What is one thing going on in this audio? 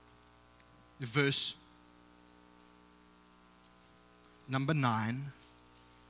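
A man speaks calmly into a microphone in an echoing room, with short pauses between phrases.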